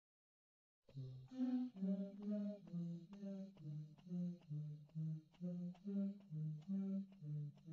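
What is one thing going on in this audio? A light melody of short, bouncy notes plays.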